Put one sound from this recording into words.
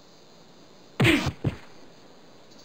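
A body thumps onto the ground.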